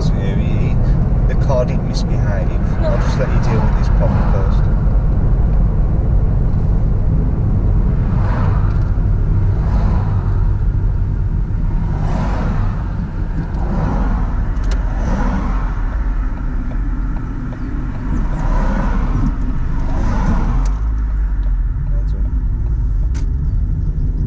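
Wind and road noise roar steadily around an open car driving along.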